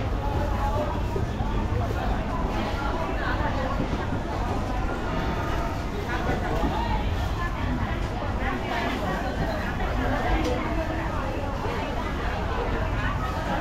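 A busy street market hums with many distant voices chattering.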